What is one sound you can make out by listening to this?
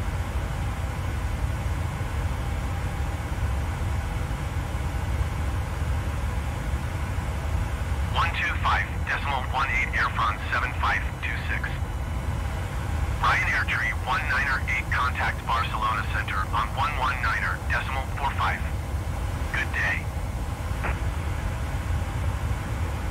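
A low, steady engine drone fills an airliner cockpit.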